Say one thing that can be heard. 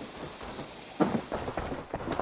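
A wooden door thuds open.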